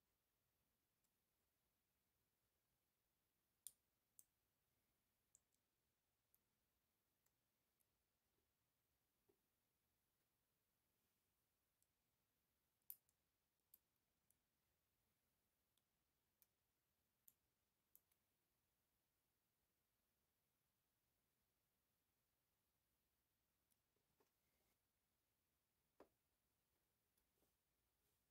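A metal tool scrapes and clicks against a plastic casing.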